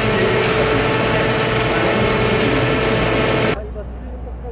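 Large plant machinery hums loudly with a steady tone.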